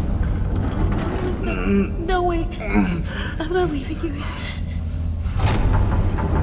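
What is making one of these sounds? A young woman pleads with rising distress, close by.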